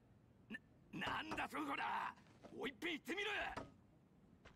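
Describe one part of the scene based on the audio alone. A man exclaims in surprise.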